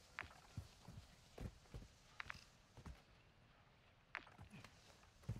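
Footsteps thud and scrape on rock.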